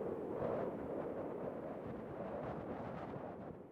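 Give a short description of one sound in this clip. Footsteps tap on asphalt.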